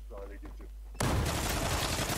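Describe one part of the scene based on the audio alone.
Automatic gunfire rattles loudly.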